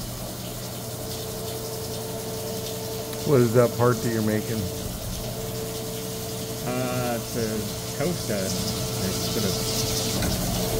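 A milling cutter whines steadily as it cuts into metal.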